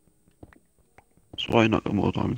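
A pickaxe chips at stone with soft, quick taps.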